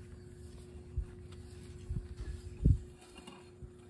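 Metal knocks and clanks sharply a few times.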